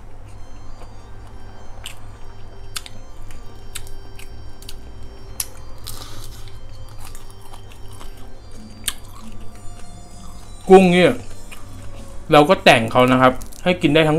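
Shrimp shells crack and crunch as a young man peels them.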